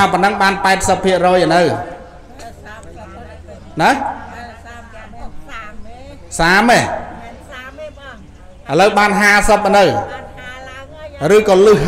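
A group of men and women chant a prayer together in long, steady phrases.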